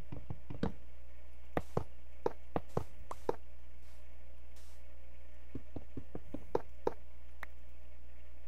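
Game blocks are placed with short, soft knocks.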